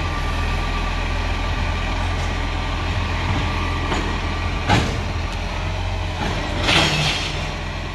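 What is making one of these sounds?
A garbage truck engine idles with a low rumble nearby.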